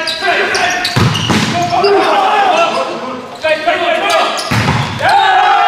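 A volleyball is struck hard several times in an echoing hall.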